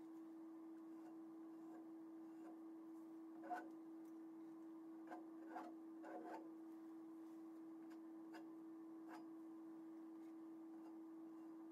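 A sponge dabs softly against a canvas.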